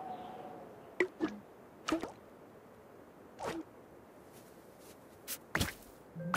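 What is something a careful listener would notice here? Short bright pops and chimes sound as game pieces match and burst.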